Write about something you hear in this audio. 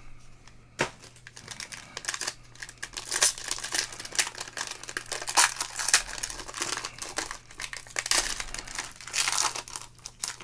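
Foil wrapping crinkles and tears as a pack is ripped open.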